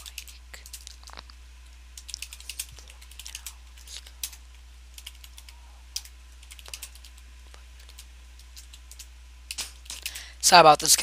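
Keys tap on a computer keyboard in quick, uneven bursts.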